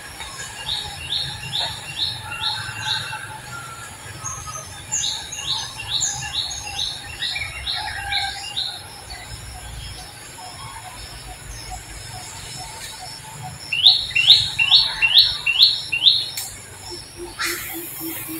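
A baby monkey suckles softly, close by.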